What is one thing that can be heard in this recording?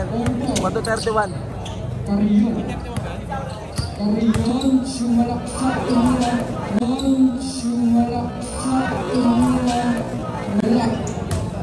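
A large crowd cheers and shouts in a big echoing space.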